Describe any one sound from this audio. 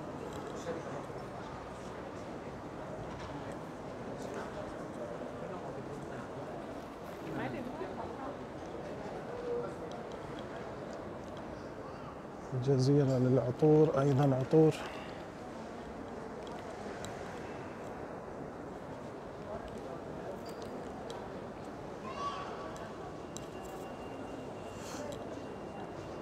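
Voices murmur indistinctly in a large echoing hall.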